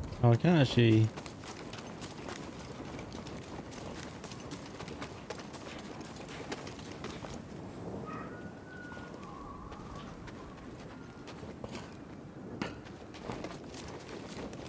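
Footsteps patter quickly on stone and grass.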